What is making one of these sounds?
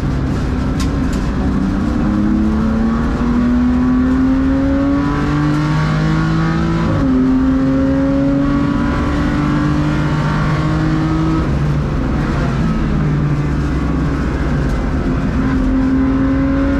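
A race car engine roars loudly from inside the cabin, rising in pitch through the gears and dropping at each shift.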